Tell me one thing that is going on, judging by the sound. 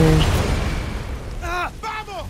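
An explosion booms and rumbles, then fades.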